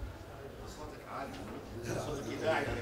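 Another middle-aged man speaks into a microphone.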